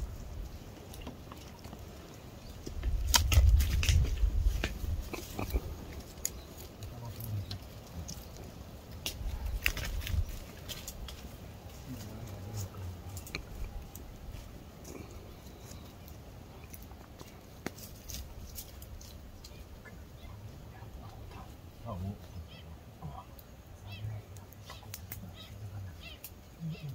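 Leaves rustle and branches creak.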